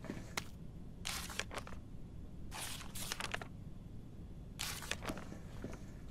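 Paper pages rustle as they are flipped.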